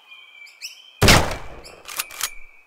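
A rifle fires a single loud shot.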